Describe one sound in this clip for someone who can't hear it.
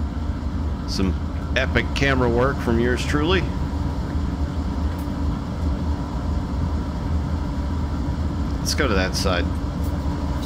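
A locomotive horn blasts in long, loud blows.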